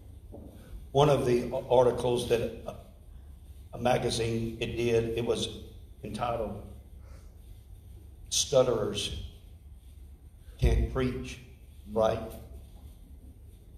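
A man speaks with animation through a microphone in a large room.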